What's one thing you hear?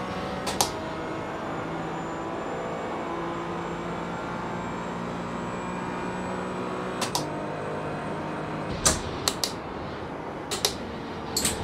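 Sharp clicks sound now and then as gears shift.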